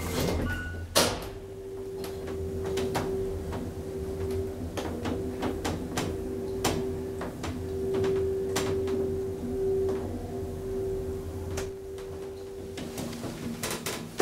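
An elevator hums steadily as it rides up.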